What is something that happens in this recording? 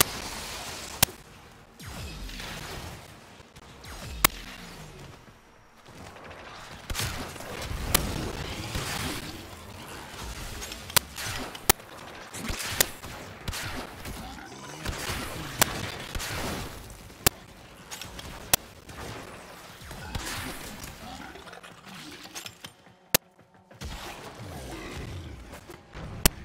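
A bowstring snaps sharply as arrows fly.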